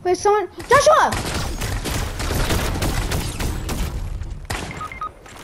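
A gun fires in rapid bursts.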